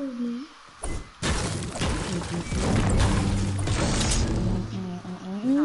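A pickaxe smashes through wooden planks with crashing sounds.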